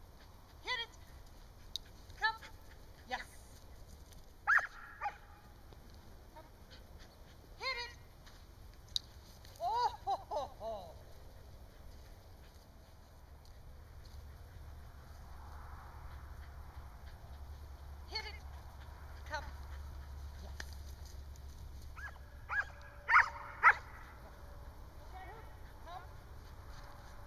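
A woman calls out commands to a dog from a short distance outdoors.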